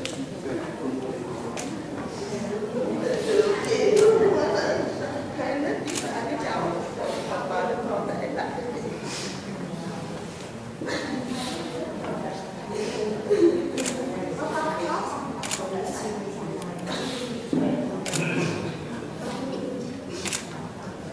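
A crowd of men and women murmur and talk quietly nearby in a room with some echo.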